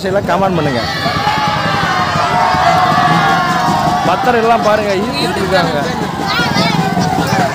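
A large outdoor crowd of men and women chatters and calls out loudly.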